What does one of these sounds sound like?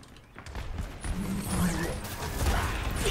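Rapid gunfire crackles in a video game.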